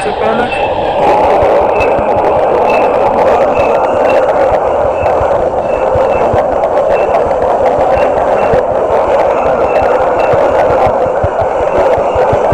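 A treadmill belt whirs steadily.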